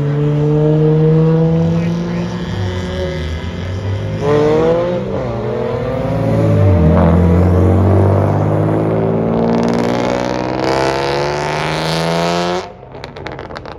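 Car engines rev hard and roar as cars speed off.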